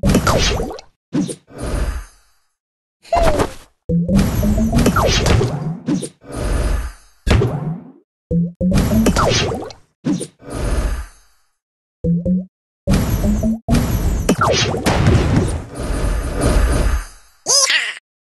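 Cartoon tiles burst and pop with bright, chiming game effects.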